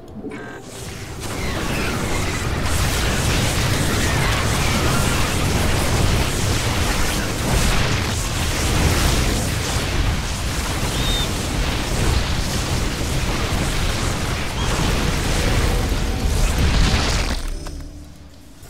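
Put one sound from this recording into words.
Laser beams fire and explosions rumble in a loud battle.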